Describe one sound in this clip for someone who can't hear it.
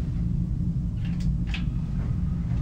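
A computer's power button clicks.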